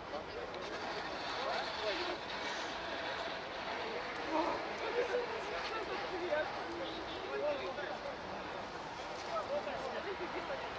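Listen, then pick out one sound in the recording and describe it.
Several men talk and call out to each other outdoors at a distance.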